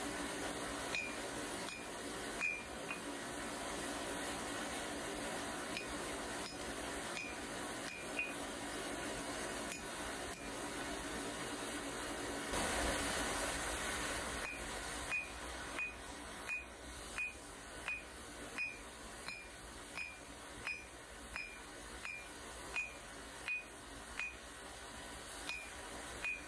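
A hammer rings sharply on hot metal against an anvil, in a steady rhythm.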